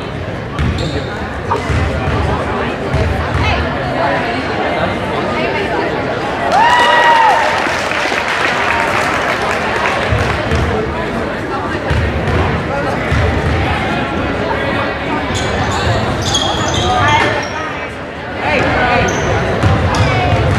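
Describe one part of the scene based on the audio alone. A basketball bounces on a wooden floor with dull thumps.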